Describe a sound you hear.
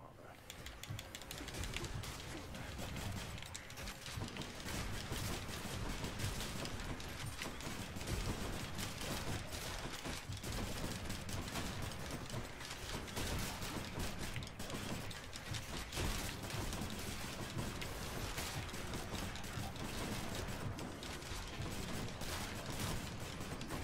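Game combat sounds of blasts and explosions play loudly and busily.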